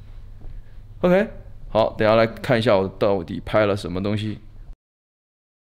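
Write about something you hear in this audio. A young man speaks close up with animation.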